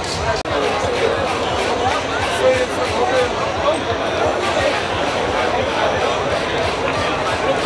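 A crowd of young adults chatters nearby.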